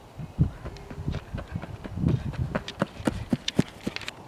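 A softball player's cleats thud on packed dirt as she runs.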